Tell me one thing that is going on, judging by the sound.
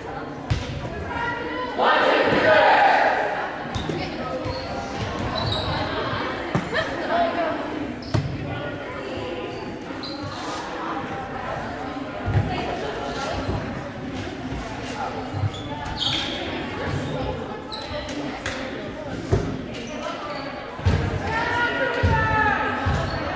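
People chatter in a large echoing gym.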